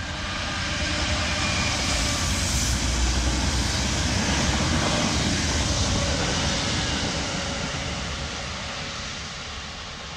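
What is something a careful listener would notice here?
Wheels of tank wagons rumble and clatter over the rails.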